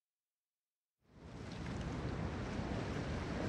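Sea waves wash and roar steadily.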